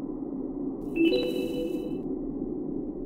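A bright chime rings once.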